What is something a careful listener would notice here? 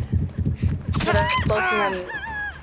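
A blade slashes into flesh with a sudden wet hit.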